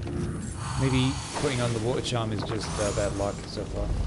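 Heavy wooden doors creak open.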